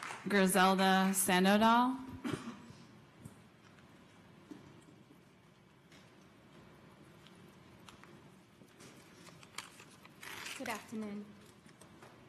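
A woman speaks through a microphone, with short pauses.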